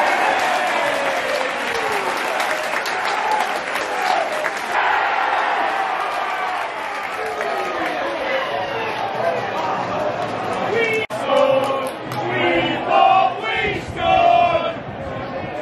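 A stadium crowd cheers and chants loudly in a large open space.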